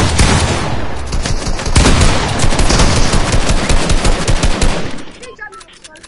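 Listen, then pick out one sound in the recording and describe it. Gunshots and crashing blows ring out rapidly in a video game.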